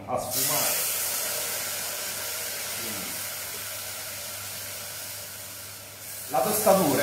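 Liquid simmers in a pot with a steady hiss.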